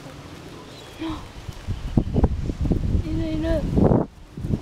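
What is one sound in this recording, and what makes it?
A toddler babbles in a high voice.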